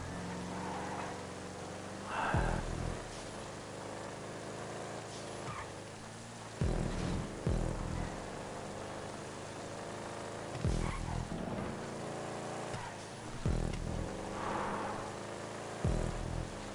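Car tyres screech while sliding.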